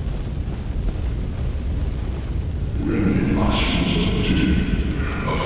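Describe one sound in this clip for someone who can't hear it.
Flames crackle and roar with a low rumble.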